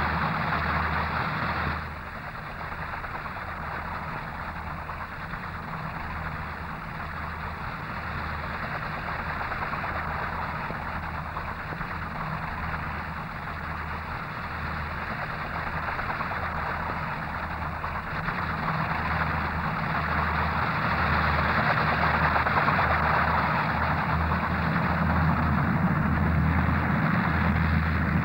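An aircraft's rotors and propellers drone overhead.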